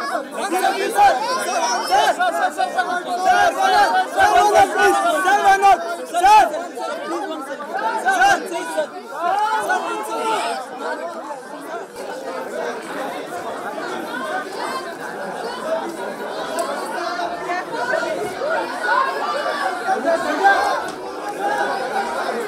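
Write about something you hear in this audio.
A crowd of men and women chatter and shout excitedly close by.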